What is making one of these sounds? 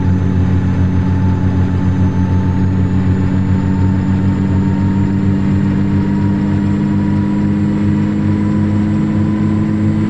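A truck engine drones steadily at a low pitch.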